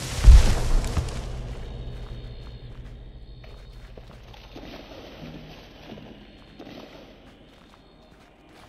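Light footsteps tap on wooden boards.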